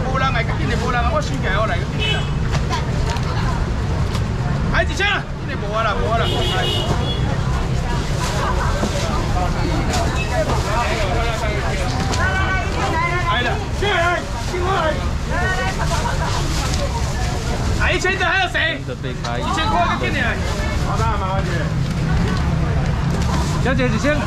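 A crowd of men and women chatter loudly all around.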